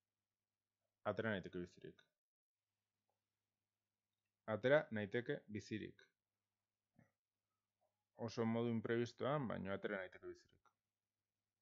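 A man speaks calmly through a close microphone, in short bursts.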